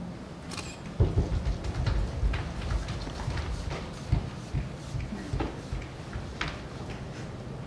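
Bodies thump and shuffle on a hollow floor.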